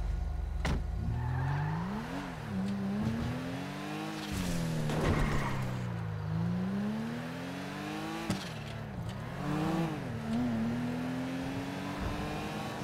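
A car engine revs, rising and falling in pitch as the car speeds up and shifts gears.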